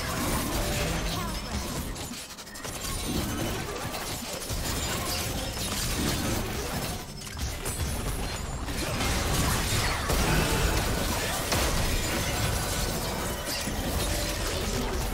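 Magic blasts and clashing weapons crackle and boom in a busy video game fight.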